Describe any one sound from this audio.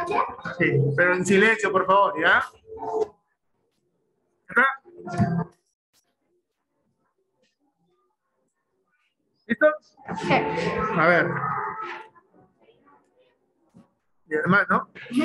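A man explains calmly over an online call, with pauses.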